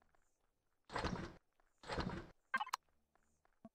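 A game menu closes with a soft whoosh.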